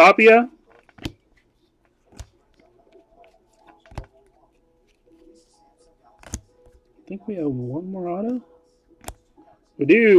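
Stiff cards tap and flick softly as they are shuffled by hand.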